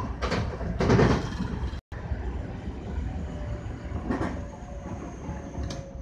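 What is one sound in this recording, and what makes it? Train wheels clack over rail joints now and then.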